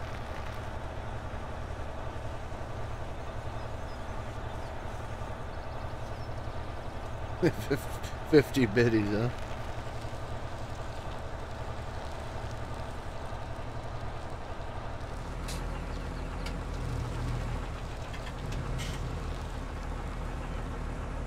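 A heavy truck engine rumbles steadily as it hauls a load.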